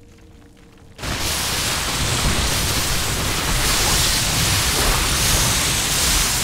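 Gunfire and blasts from a battle rattle without pause.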